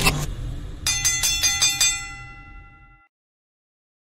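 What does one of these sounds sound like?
A bright chiming jingle rings out and fades.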